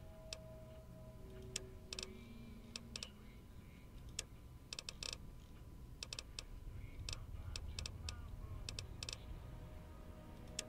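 Short, sharp menu clicks sound again and again as a selection moves through a list.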